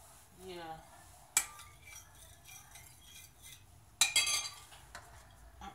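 A spoon clinks against a glass bowl.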